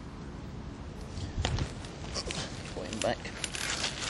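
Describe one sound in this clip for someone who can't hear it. A fish splashes into shallow water.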